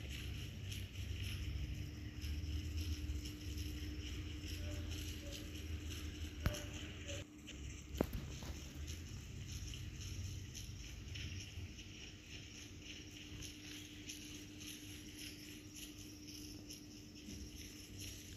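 A large animal's paws thud softly on the ground as it walks.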